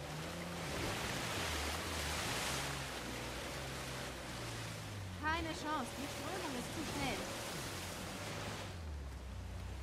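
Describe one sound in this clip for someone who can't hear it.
Water splashes under tyres.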